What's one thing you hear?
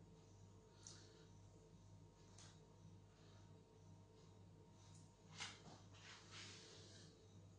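Soft food pieces are set down on a metal tray with light knocks.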